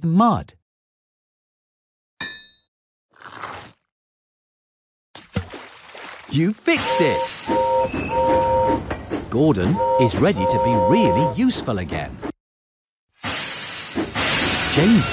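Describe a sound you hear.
A man speaks with animation in a cartoon voice.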